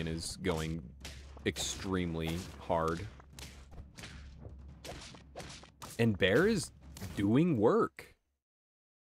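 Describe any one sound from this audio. Short cartoon hit sounds pop and thud in quick succession.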